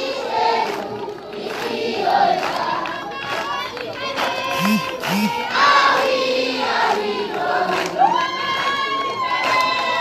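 A crowd of children sings together outdoors.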